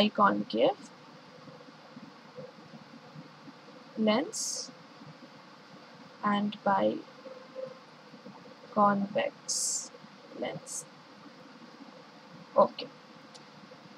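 A young woman speaks calmly and slowly into a close microphone, in short phrases with pauses.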